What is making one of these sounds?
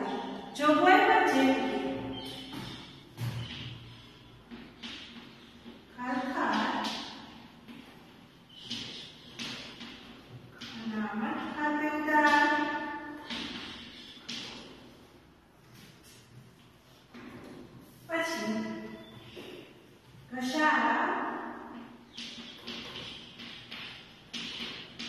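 A woman speaks calmly and clearly, as if teaching, in a room with a slight echo.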